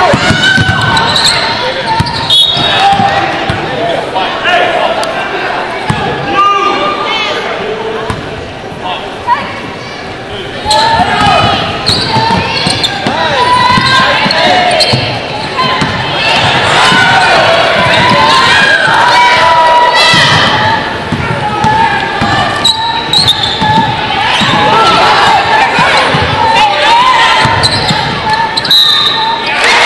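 A crowd cheers and shouts in a large echoing arena.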